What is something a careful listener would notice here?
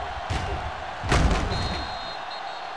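Football players collide with a heavy thud.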